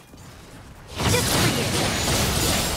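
Magic spells blast and crackle in a fight.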